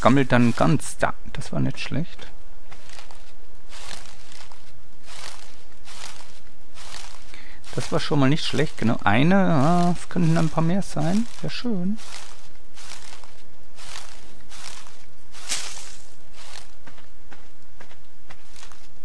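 Leafy plants rustle again and again as berries are plucked from them.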